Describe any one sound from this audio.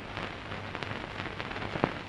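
A woman's high heels tap on the floor.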